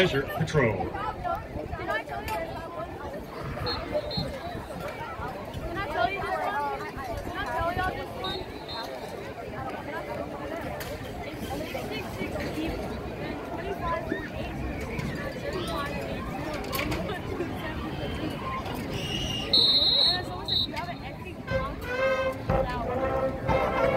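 A crowd chatters outdoors in the open air.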